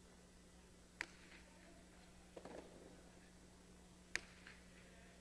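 A ball smacks sharply against a wall, echoing in a large hall.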